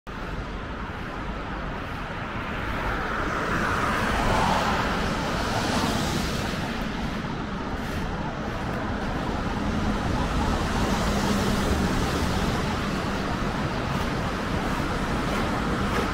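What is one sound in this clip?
Car tyres hiss past on a wet road.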